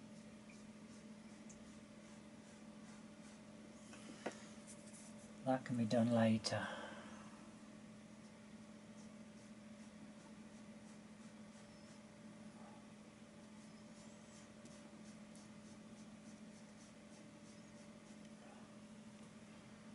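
A brush dabs and strokes softly on a canvas.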